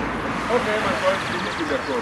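A car drives past on a road nearby.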